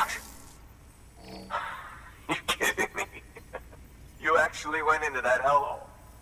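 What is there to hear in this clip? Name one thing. A man speaks in surprise, close by.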